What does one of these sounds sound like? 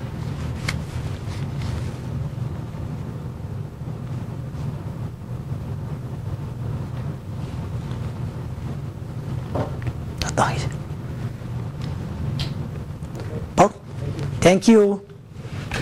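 A middle-aged man speaks calmly through a microphone.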